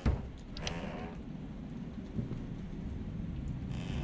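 A wooden wardrobe door creaks open.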